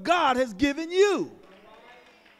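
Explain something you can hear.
A man calls out loudly over a microphone, his voice echoing in a hall.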